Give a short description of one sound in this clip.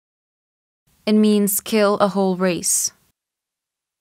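A young woman answers calmly and clearly, close to a microphone.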